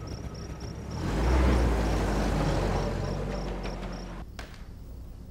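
A jeep engine revs and rumbles as the jeep pulls away.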